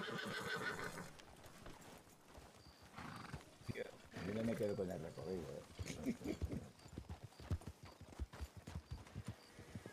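Horse hooves thud and clop on soft ground.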